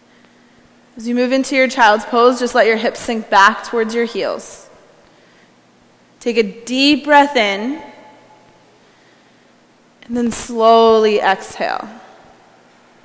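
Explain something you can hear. A woman gives calm instructions in a large, echoing room.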